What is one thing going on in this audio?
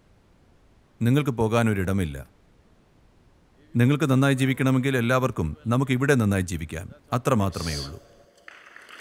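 An elderly man speaks calmly and expressively into a microphone.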